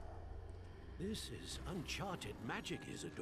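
A woman speaks briefly.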